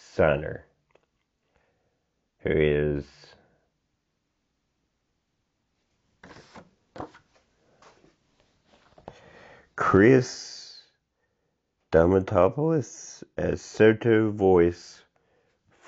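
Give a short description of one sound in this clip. A young man speaks close to a microphone in short bursts, with pauses.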